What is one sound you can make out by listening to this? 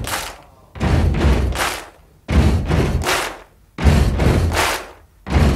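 A large crowd cheers and chants in loud rhythmic bursts.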